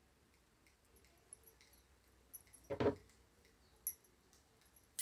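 Metal knitting needles click softly against each other.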